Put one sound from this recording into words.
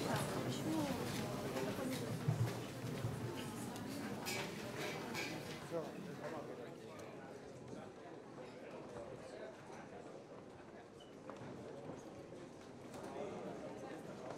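A large crowd murmurs and chatters in a large echoing hall.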